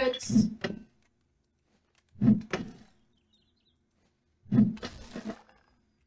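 A hammer bangs on a wooden cabinet door.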